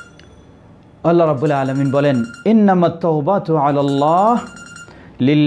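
A man recites in a slow, melodic voice close to a microphone.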